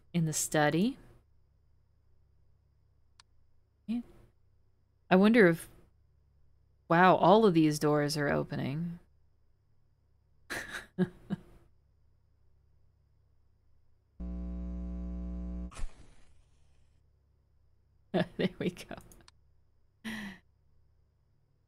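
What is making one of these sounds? A young woman speaks with animation through a microphone, in short bursts.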